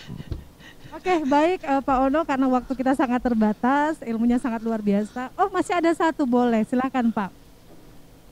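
A young woman speaks into a microphone, heard through an online call.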